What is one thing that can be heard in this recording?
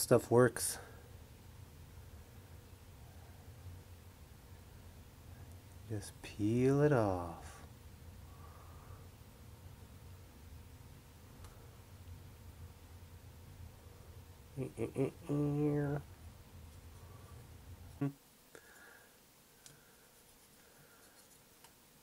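A stiff brush dabs and scrubs softly on a wet surface.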